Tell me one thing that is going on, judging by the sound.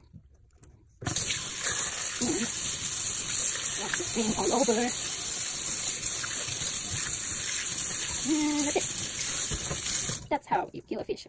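Water runs from a tap and splashes steadily.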